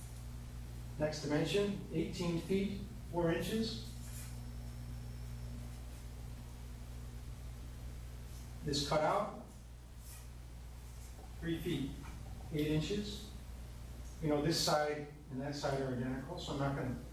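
A man talks calmly in pauses, close by.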